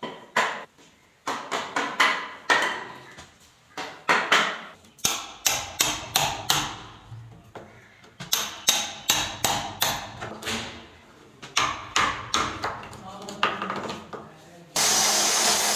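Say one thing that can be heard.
A hammer strikes a chisel cutting into wood.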